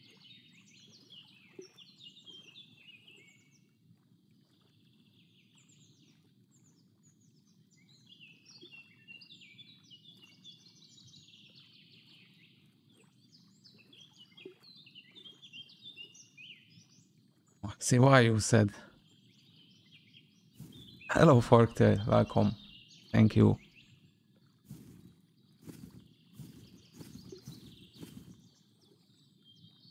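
Water laps gently at the shore.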